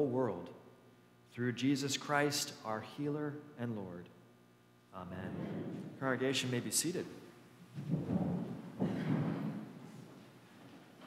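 A man sings a chant through a microphone in a large echoing hall.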